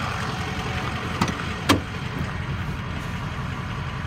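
A car door latch clicks.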